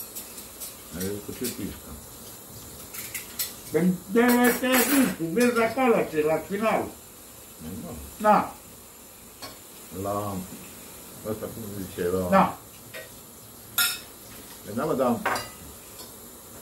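Another middle-aged man answers calmly close by.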